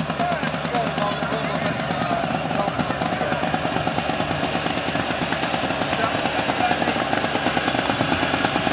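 A sports car engine idles roughly with a rapid throbbing beat.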